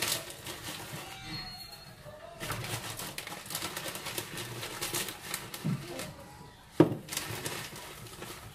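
Food scrapes and rustles against a grater.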